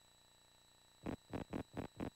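A game menu blips as the cursor moves between options.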